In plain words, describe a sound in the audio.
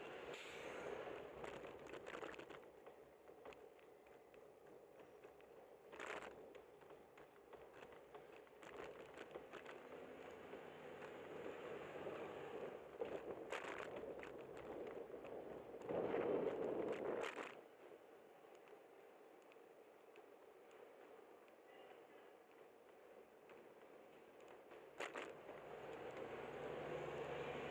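Wind rushes and buffets against the microphone.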